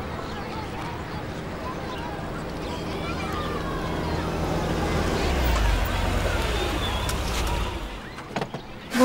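A car engine rumbles as a car pulls up and stops.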